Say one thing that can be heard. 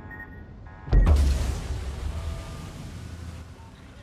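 Heavy naval guns fire with a deep, loud boom.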